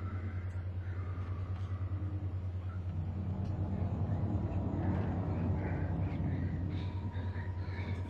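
A young man talks into a microphone close by.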